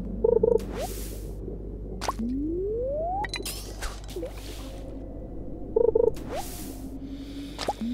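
A fishing line whips out in a quick whoosh.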